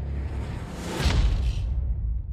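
A door slams shut with a heavy thud.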